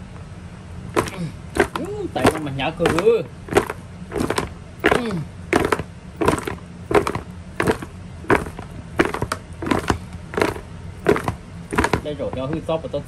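Pieces of cooked meat thump against the sides of a plastic bowl as it is tossed.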